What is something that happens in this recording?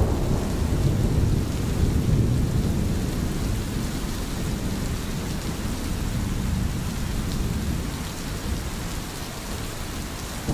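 Rain falls softly and steadily outdoors.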